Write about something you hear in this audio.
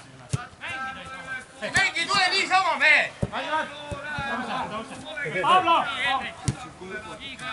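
A football is kicked with a sharp thump.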